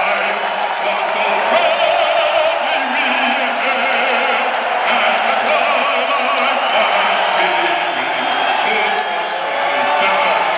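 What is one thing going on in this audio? A man sings through loudspeakers in a large echoing arena.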